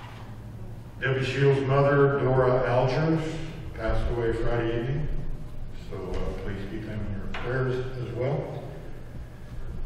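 An elderly man speaks through a handheld microphone in a large echoing hall.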